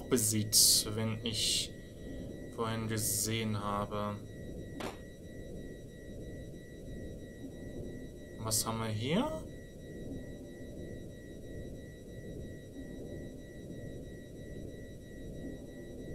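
Soft retro game music plays steadily.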